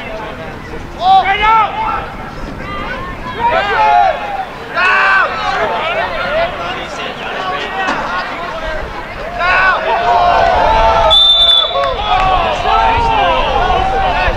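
Spectators shout and cheer from the stands outdoors.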